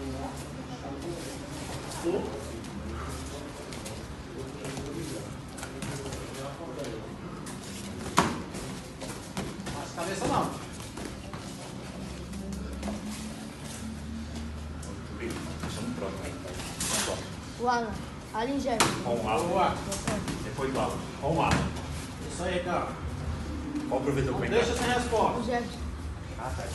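Bare feet shuffle and slap on a mat.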